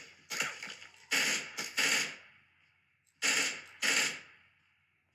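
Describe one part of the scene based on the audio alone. Gunshots ring out from a phone game in quick bursts.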